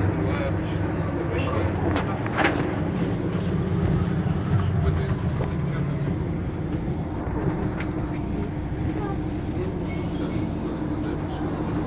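A bus engine idles with a low steady rumble.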